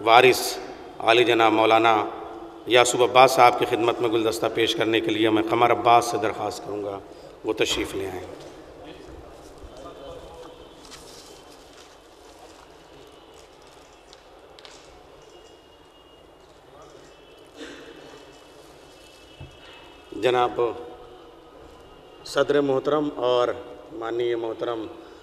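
A man speaks with feeling through a microphone and loudspeakers in an echoing hall.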